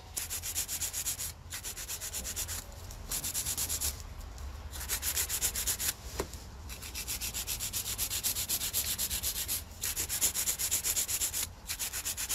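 A nail file rasps quickly back and forth against a fingernail, in bursts with short pauses.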